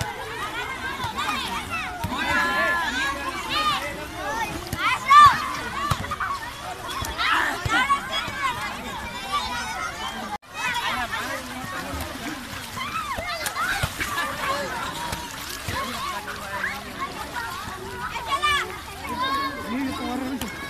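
Many children shout and laugh excitedly outdoors.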